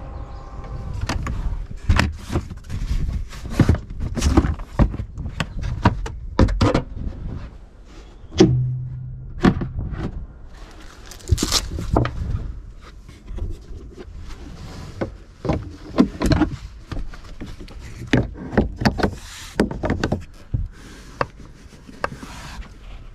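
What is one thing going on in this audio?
Plastic panels and a cargo net clatter and click as they are handled.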